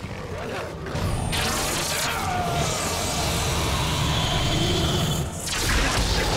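A magical spell swells with a loud whooshing hum.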